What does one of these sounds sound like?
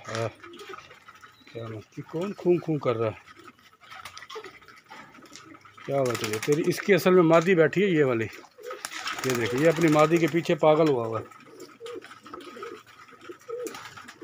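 Pigeons coo softly.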